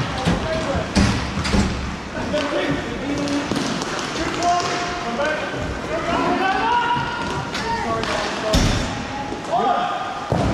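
Skate wheels rumble across a hard floor in a large echoing hall.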